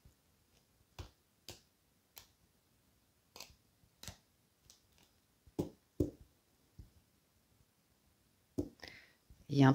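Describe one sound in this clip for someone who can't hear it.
Cards tap and slide softly on a table.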